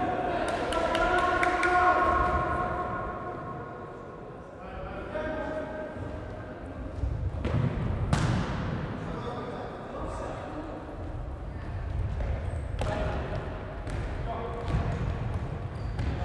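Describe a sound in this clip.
Sneakers squeak on the wooden floor.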